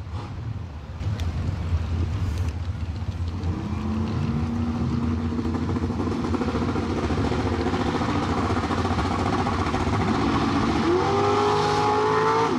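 A truck engine rumbles and revs loudly.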